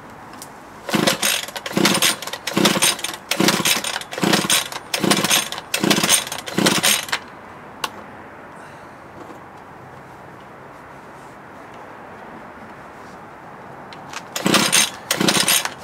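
A man pulls a small engine's starter cord sharply, over and over.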